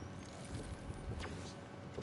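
A pickaxe swings and strikes with a sharp knock.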